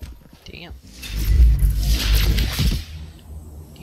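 Gunfire and explosions roar loudly in a video game.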